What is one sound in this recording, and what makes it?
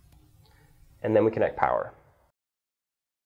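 A young man speaks calmly and close by.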